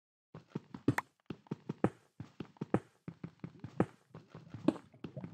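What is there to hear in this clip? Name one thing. A pickaxe chips at stone in quick, repeated knocks.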